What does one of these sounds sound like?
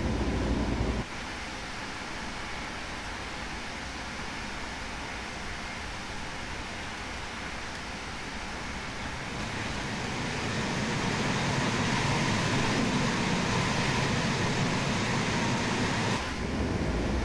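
An electric locomotive hums and rolls past on the tracks.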